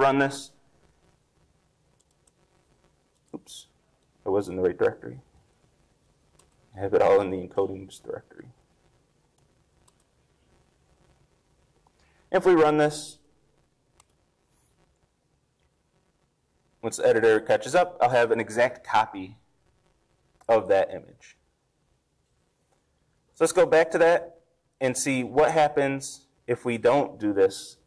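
A man speaks calmly in short phrases with pauses, heard through a microphone.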